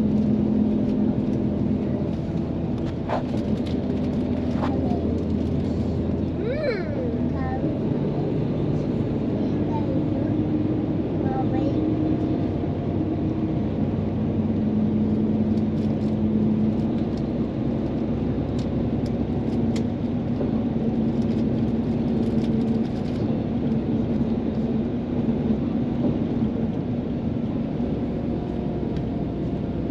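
A train rumbles and hums steadily from inside a carriage.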